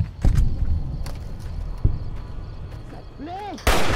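A rifle fires a sharp shot.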